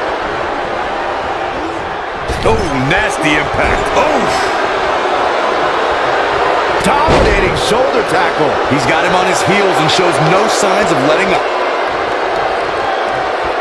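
Heavy blows thud as wrestlers strike each other.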